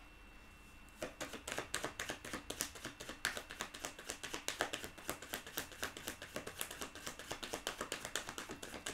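Fingernails tap rapidly on a phone.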